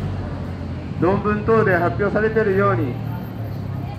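An elderly man speaks loudly into a microphone.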